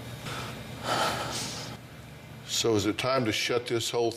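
A woman sniffles softly.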